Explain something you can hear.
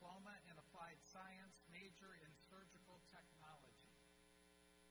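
A man reads out over a loudspeaker, echoing in a large hall.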